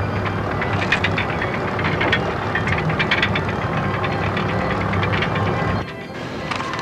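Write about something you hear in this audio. A roller coaster car clatters and rattles steadily up a lift hill.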